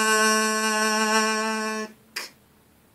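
A young man sings a steady held note close to the microphone.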